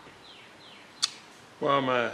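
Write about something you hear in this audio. A small plastic device is set down with a sharp knock.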